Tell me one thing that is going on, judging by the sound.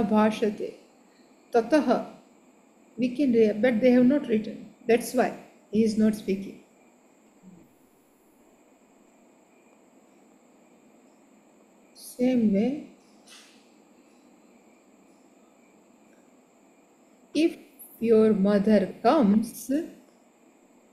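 An elderly woman speaks calmly in short phrases over an online call.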